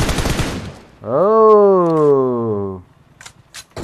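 A man exclaims loudly with a drawn-out cry, close to a microphone.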